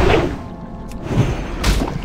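A spell bursts with a ringing shimmer.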